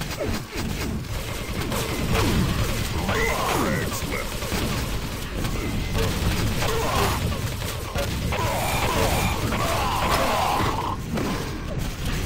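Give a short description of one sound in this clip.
Gunshots and blasts from a video game go off again and again.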